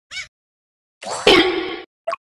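A game whoosh and splash sound bursts out.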